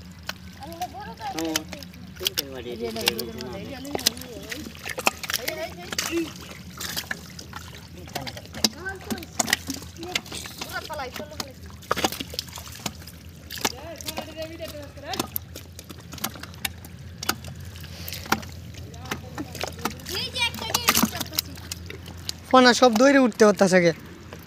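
Feet squelch and splash through wet mud.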